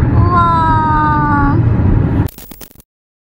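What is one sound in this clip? Tyres roll steadily on a highway, heard from inside a moving car.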